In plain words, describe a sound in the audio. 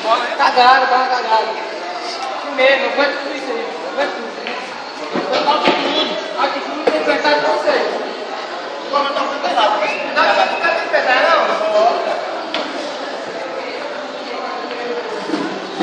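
Billiard balls click together on a pool table.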